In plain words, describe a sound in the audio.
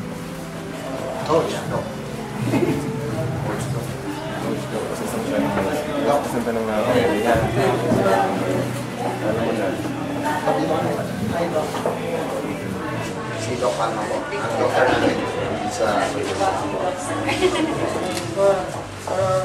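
Several men and women chat and laugh nearby.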